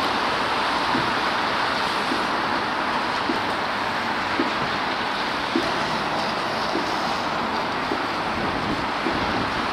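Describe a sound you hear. Cars drive past with tyres hissing on a wet road.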